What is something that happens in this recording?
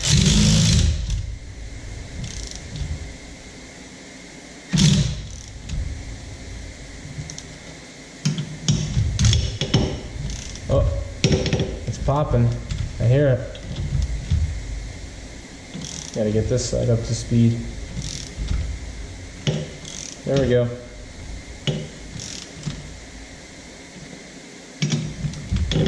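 A cordless ratchet whirs in short bursts.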